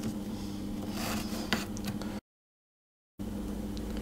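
A metal spatula scrapes softly across paper.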